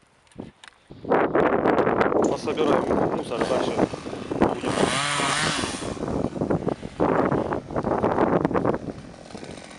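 A chainsaw roars loudly nearby.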